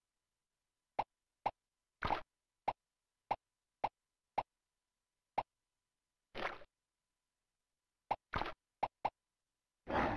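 Short bouncy blips sound as a game character jumps.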